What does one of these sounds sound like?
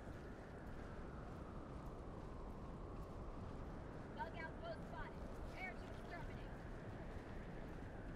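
A strong wind howls steadily through a blizzard.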